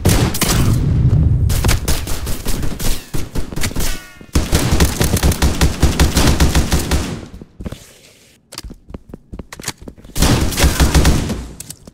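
A gun fires in rapid bursts of loud shots.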